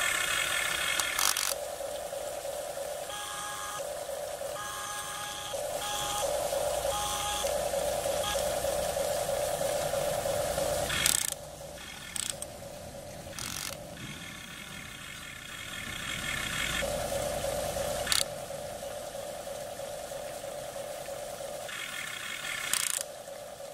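A small electric toy motor whines and whirs in bursts.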